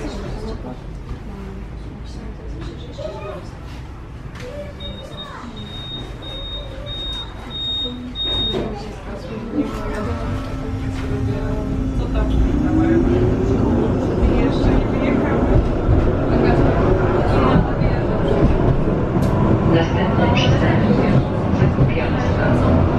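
A tram rumbles and rattles along the rails.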